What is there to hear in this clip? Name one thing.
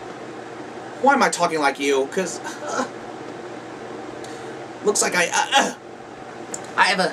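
A young man speaks in playful puppet voices close to the microphone.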